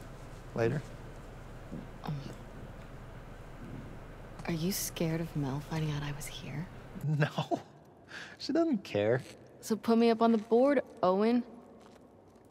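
A young woman speaks casually, close by.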